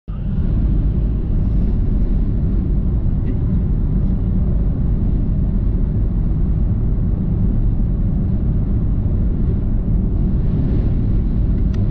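Tyres rumble steadily on the road inside a moving car.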